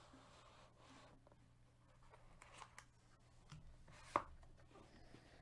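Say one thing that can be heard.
A foil wrapper crinkles and rustles as it is handled.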